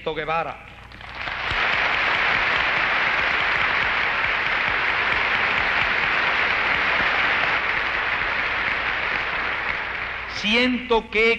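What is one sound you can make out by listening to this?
A large crowd applauds loudly and steadily.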